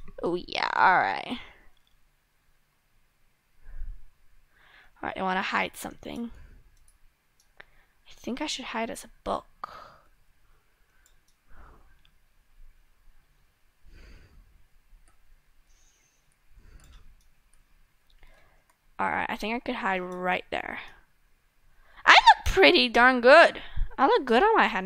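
A young girl talks with animation close to a microphone, in short bursts.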